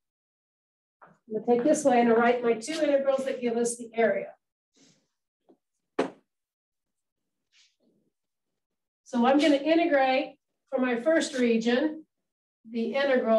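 A woman lectures calmly through a close microphone, pausing now and then.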